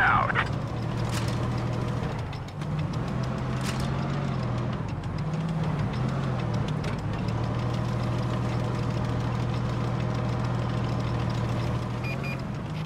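A tank's engine drones as the tank drives.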